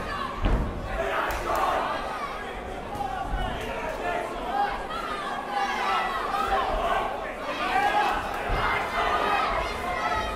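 Punches thud on a boxer.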